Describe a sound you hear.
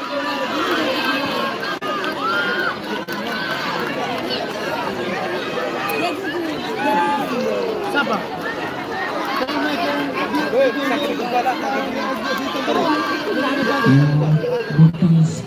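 A crowd of spectators shouts and chatters loudly outdoors.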